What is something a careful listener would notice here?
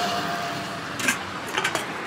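A steel lid clanks onto a pot.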